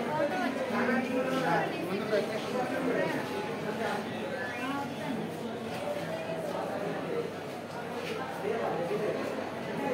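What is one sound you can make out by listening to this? A busy crowd chatters and calls out below.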